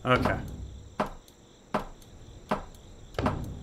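A wooden club thuds repeatedly against a hard shell.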